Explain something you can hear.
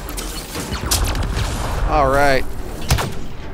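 A warbling energy effect swirls loudly.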